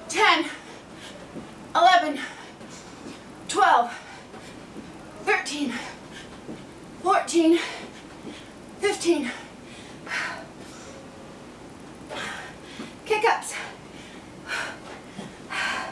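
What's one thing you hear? A woman speaks in short breathless bursts close by.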